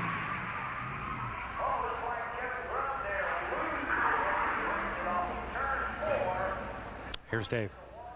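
A race car engine roars.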